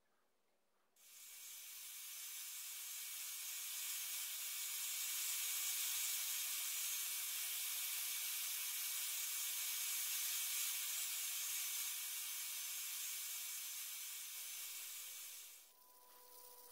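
A belt sander grinds against wood with a steady high hiss.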